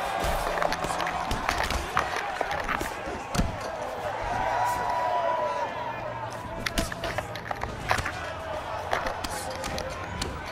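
Punches thud against gloves and bodies.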